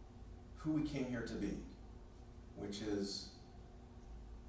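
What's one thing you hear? A middle-aged man speaks calmly through a clip-on microphone in a room with a slight echo.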